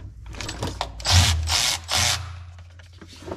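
A cordless ratchet whirs in short, loud bursts.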